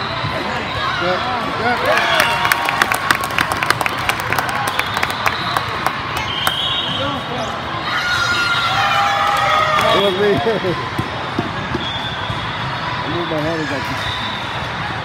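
Young women shout and cheer on the court.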